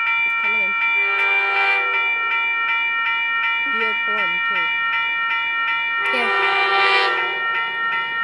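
A train horn blows loudly in long blasts.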